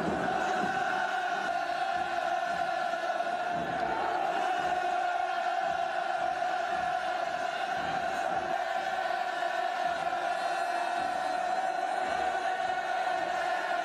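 A large crowd cheers loudly outdoors.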